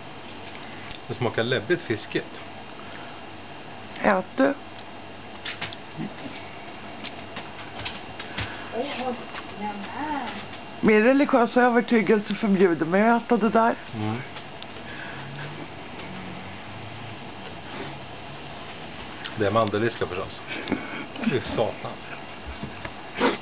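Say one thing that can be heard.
A middle-aged man speaks close by in a relaxed, chatty way.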